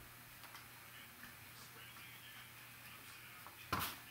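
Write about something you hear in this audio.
Cardboard packaging rustles and slides in hands.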